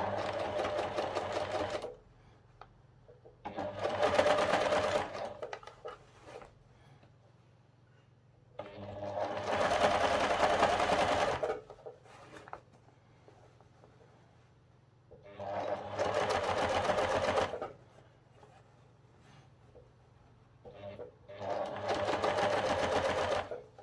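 A sewing machine whirs in short bursts of stitching.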